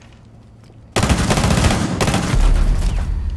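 Rapid gunfire rattles loudly and close by.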